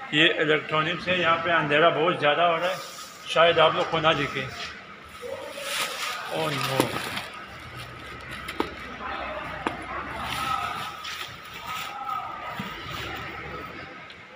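Cardboard boxes bump and scrape as they are handled.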